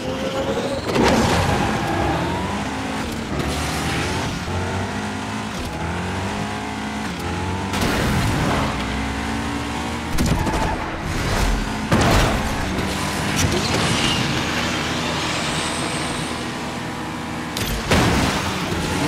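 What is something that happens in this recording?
Nitro boosts whoosh in sudden bursts.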